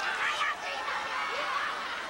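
A young woman cries out in pain.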